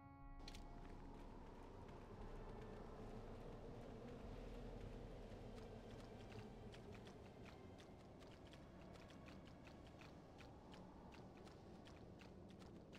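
Footsteps patter quickly on sand.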